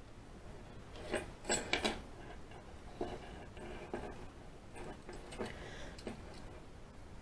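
Small metal parts of a padlock click and rattle in hands.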